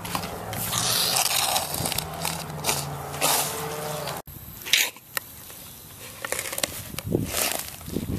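A metal tool scrapes and squelches in wet mud.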